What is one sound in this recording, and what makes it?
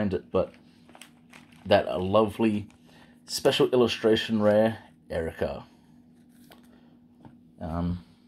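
Cardboard cards rub and tap softly against fingers.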